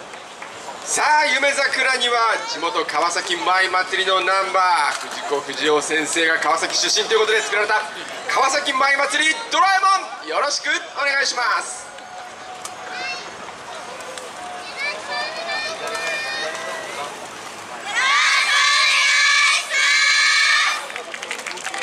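A group of young women shout and chant loudly together outdoors.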